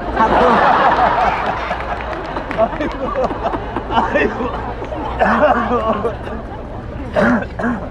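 A crowd of men and women laughs loudly.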